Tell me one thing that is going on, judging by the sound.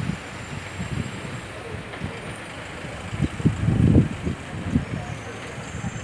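A van engine rumbles as the van pulls past.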